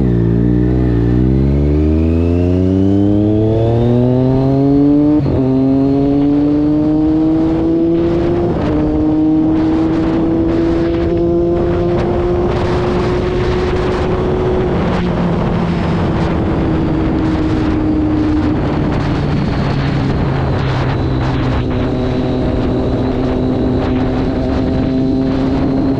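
Wind rushes past loudly at speed.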